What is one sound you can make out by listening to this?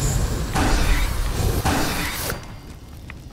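A gun fires rapidly at close range.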